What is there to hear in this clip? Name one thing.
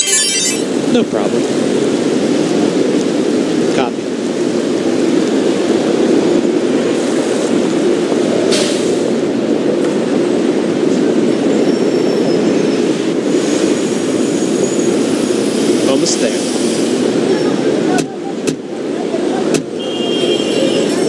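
Fire truck engines rumble steadily.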